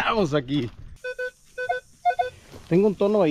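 A metal detector beeps in short tones.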